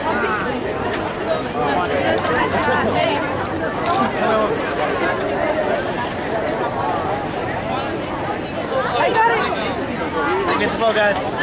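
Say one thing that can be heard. Young people chatter and laugh nearby outdoors.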